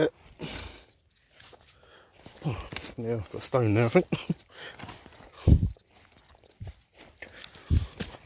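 Boots crunch on dry grass.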